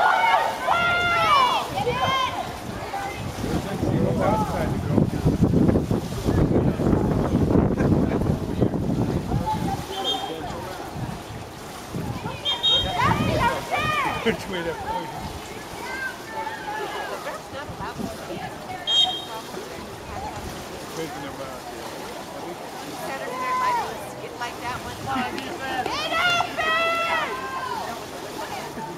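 Spectators shout and cheer loudly outdoors.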